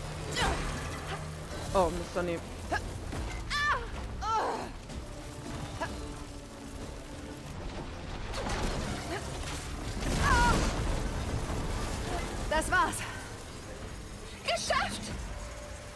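Heavy blasts boom and crackle during a fight.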